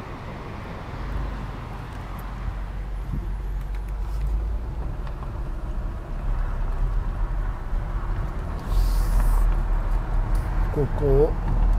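A car engine rumbles low from inside a moving car.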